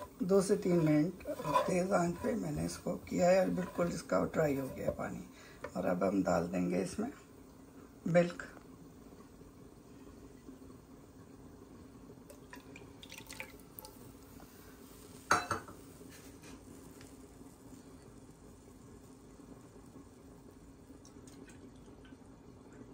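A wooden spatula scrapes and stirs grated carrot in a frying pan.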